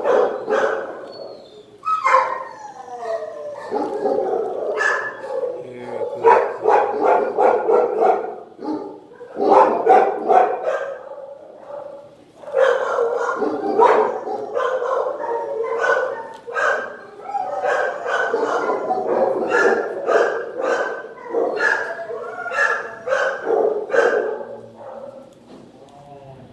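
A dog barks in an echoing hard-walled room.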